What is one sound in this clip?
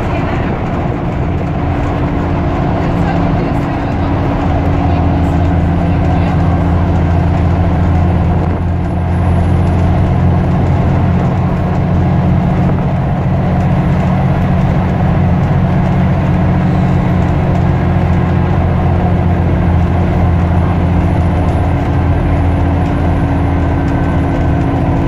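A bus rattles and rumbles as it drives along.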